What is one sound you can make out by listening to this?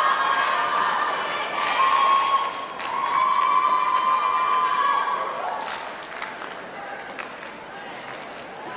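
Music plays loudly over loudspeakers in a large echoing arena.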